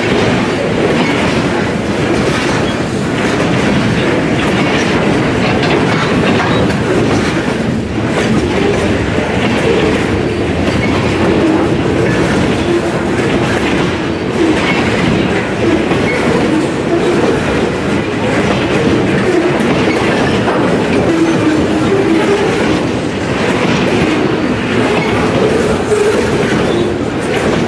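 A freight train rumbles steadily past, close by and loud.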